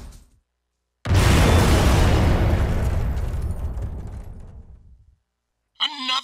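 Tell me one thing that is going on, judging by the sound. A loud explosion booms and rumbles, then slowly fades away.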